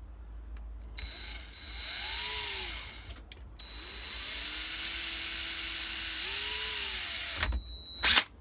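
A cordless drill whirs, speeding up and slowing down as it drives a screw.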